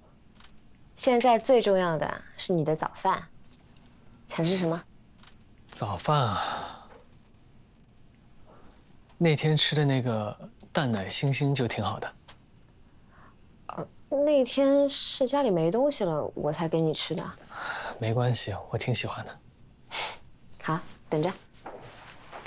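A young woman speaks softly nearby.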